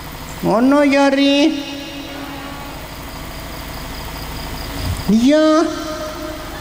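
An elderly man chants in a long, drawn-out voice through a microphone, echoing in a hall.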